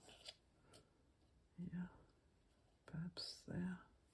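Fingertips rub and tap on paper.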